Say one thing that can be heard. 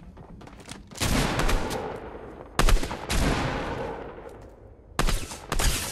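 A shotgun fires loud booming blasts that echo and fade.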